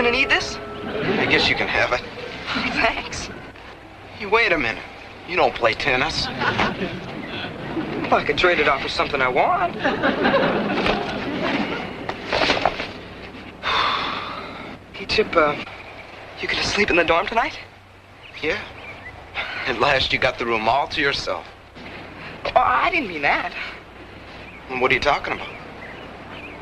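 A second teenage boy answers in a puzzled voice up close.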